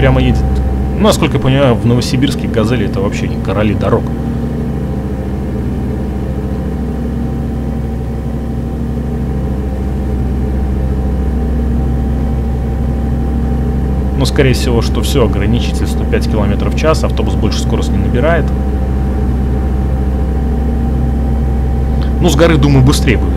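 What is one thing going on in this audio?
A bus engine hums steadily at a low pitch.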